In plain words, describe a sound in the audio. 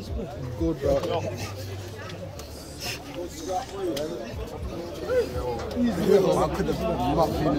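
A crowd of young men chatters and calls out nearby outdoors.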